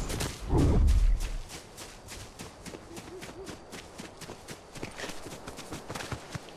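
Quick footsteps patter on grass.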